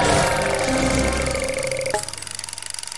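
A game's score counter chimes rapidly as points add up.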